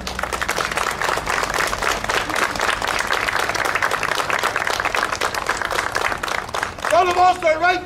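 A group of people clap their hands in a quick, steady rhythm.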